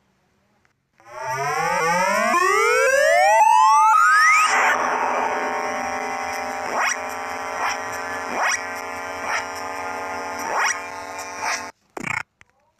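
Chiptune game music plays with rising electronic tones.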